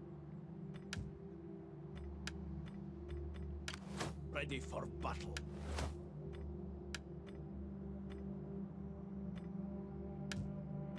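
Soft game interface clicks tick now and then.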